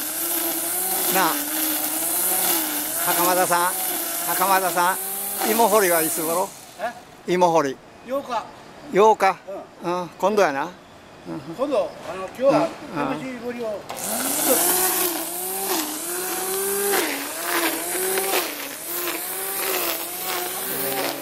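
A string trimmer whines loudly as it cuts grass.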